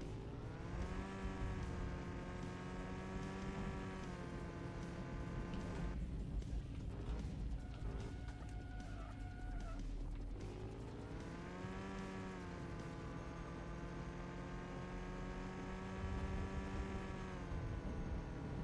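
A racing car's engine drones steadily.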